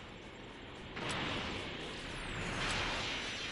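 Energy beams clash and crackle.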